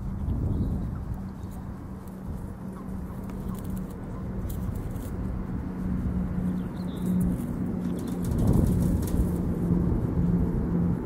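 Dry straw rustles and crackles close by.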